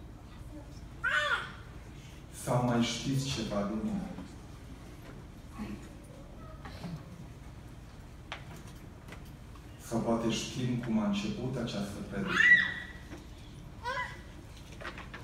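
A middle-aged man speaks through a microphone in bursts, with long pauses, in a room that echoes a little.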